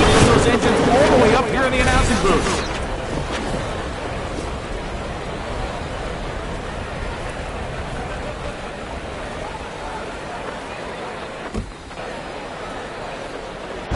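A race car engine winds down as the car coasts to a stop.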